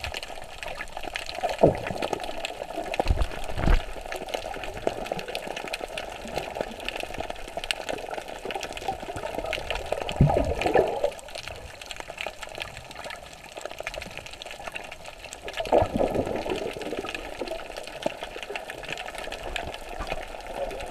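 Water sloshes and swirls, heard muffled from underwater.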